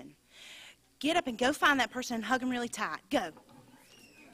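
A woman speaks into a microphone, close and loud.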